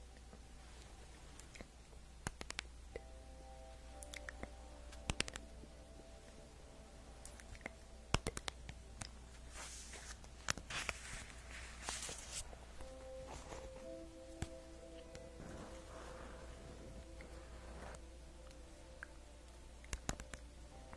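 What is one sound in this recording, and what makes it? Paper cards rustle and tap in a woman's hands close to a microphone.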